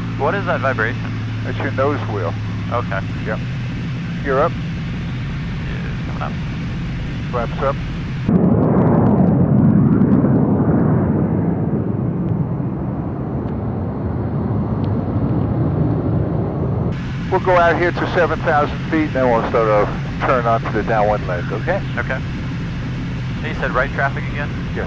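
A young man speaks over a headset microphone.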